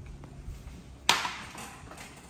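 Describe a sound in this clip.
A cup is set down on a glass table with a sharp knock.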